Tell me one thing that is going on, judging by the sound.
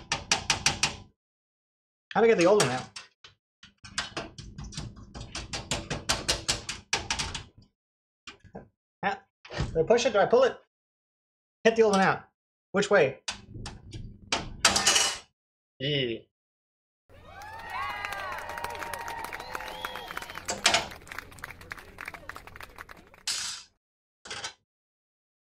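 A thin metal plate clinks against a metal case.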